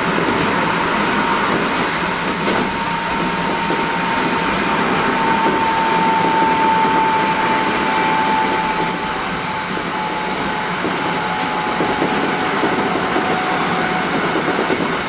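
Wheels squeal on the rails with a long, high whine.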